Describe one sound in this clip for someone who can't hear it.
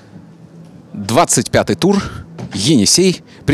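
A man speaks with animation, close into a microphone.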